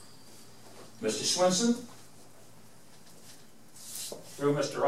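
An elderly man speaks in short bursts, heard from across the room.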